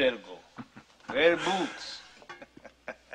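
A man laughs heartily.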